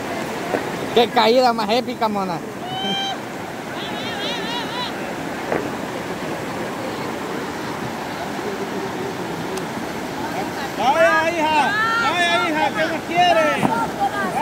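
River water rushes steadily over rocks.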